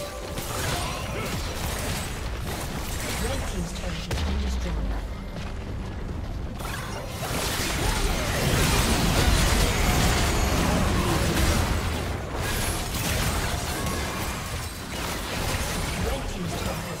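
Magic blasts and combat effects crash and whoosh in quick bursts.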